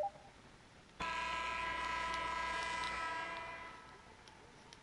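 A loud arena buzzer sounds and fades away.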